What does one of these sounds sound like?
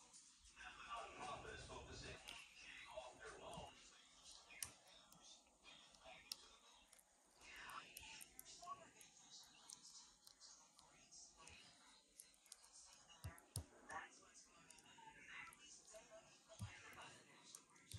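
A metal spoon scrapes and taps softly against a pan.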